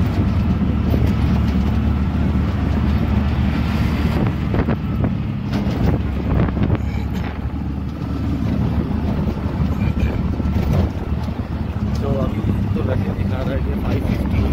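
Wind rushes past an open vehicle.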